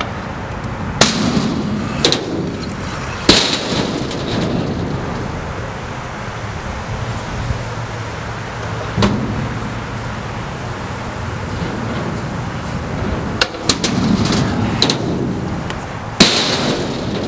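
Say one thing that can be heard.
A skateboard clacks and slaps down on concrete as a skater lands tricks.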